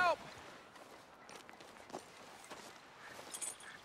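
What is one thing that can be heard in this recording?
A man's footsteps crunch on gravel.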